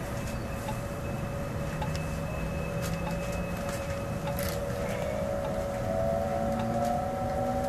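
A train rumbles and whines as it pulls into a station.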